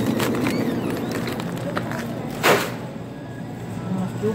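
A plastic shopping basket rattles softly.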